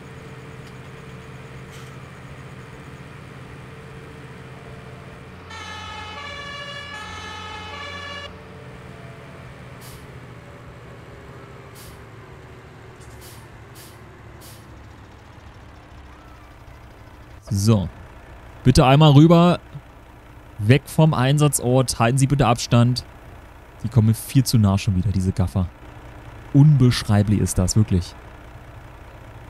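A large truck engine rumbles steadily at low speed.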